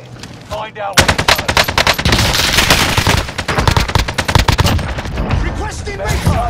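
Gunshots crack in rapid, loud bursts.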